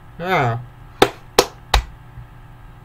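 A young man claps his hands sharply.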